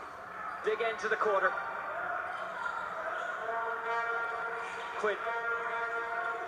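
A crowd in a large hall murmurs and cheers, heard through a small loudspeaker.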